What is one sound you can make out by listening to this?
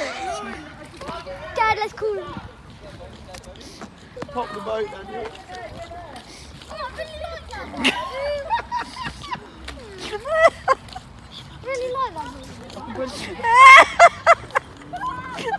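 Paddles splash in water.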